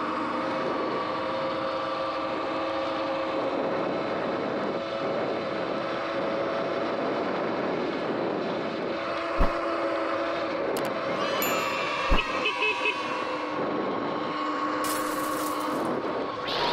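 An electric motor whines steadily.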